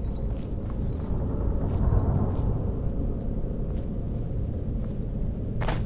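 Footsteps scuff and tap on a stone floor.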